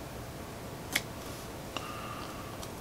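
Scissors snip with a small click.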